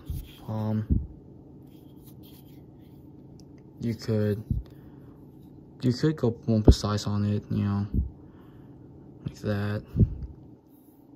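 A folding knife blade snaps open and clicks into place.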